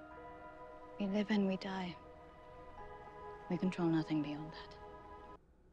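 A young woman speaks softly, heard through a loudspeaker.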